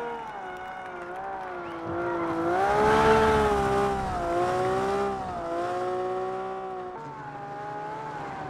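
A rally car engine revs hard, rising and falling with gear changes.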